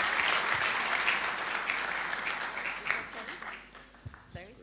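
An audience applauds in a large hall and the applause fades away.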